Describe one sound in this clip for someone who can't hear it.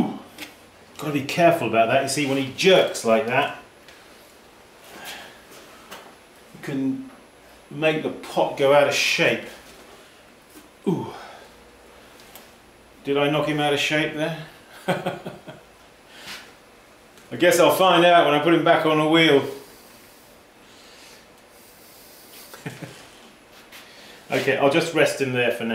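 A middle-aged man talks calmly and close by, in short bursts.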